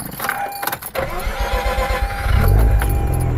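A car engine's starter cranks.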